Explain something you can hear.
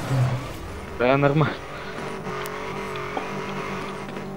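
Tyres screech as a car skids and drifts.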